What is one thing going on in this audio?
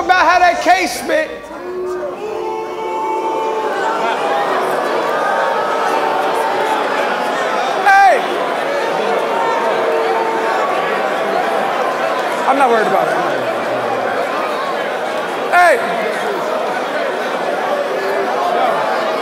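A man raps forcefully into a microphone.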